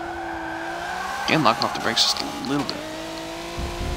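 Tyres squeal as a car slides through a bend.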